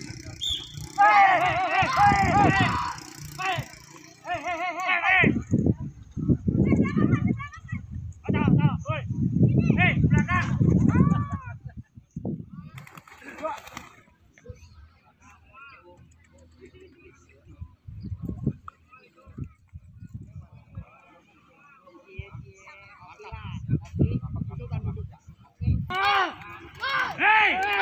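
Men call out and shout outdoors at a distance.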